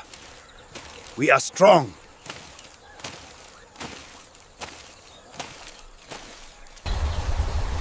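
Footsteps crunch steadily on dry ground.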